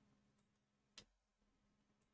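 A short interface click sounds once.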